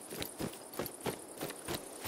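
Leafy branches rustle as they brush past.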